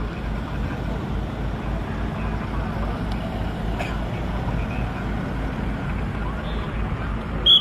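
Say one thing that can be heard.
A car drives past on a paved road.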